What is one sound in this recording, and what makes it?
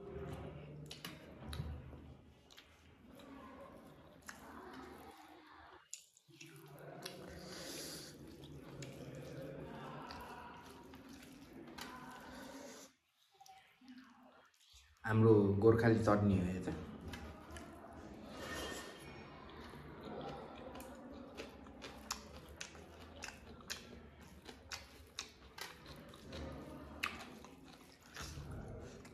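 A man mixes rice and curry with his fingers, squelching close to a microphone.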